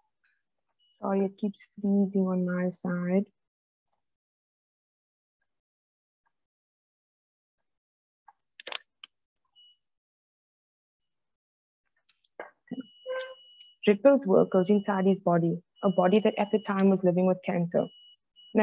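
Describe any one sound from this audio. A young woman reads aloud calmly through an online call, with long pauses.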